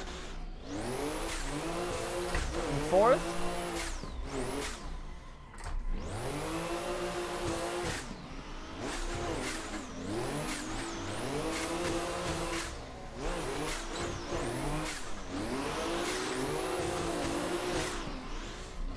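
A car engine revs hard, rising and falling again and again.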